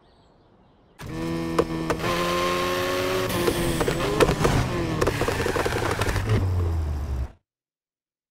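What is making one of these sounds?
A car engine rises and falls in pitch as it accelerates and shifts gears.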